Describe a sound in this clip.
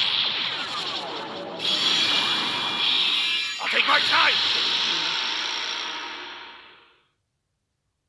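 A burst of magical whooshing and shimmering effects sweeps in and fades.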